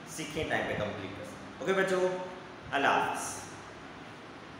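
A man speaks with animation close by, in a small echoing room.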